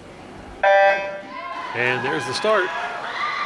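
Swimmers splash into the water.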